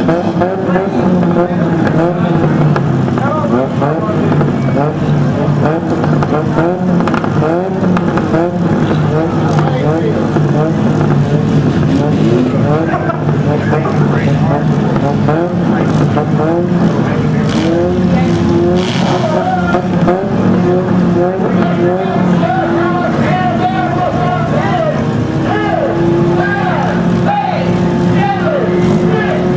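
A crowd cheers and shouts from a distance.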